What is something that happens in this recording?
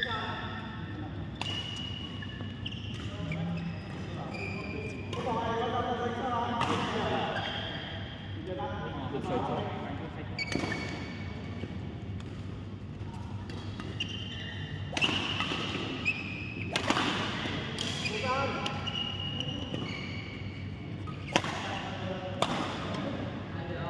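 Shoes squeak sharply on the court floor.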